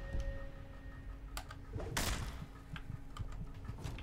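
Metal blades clash and strike during a fight.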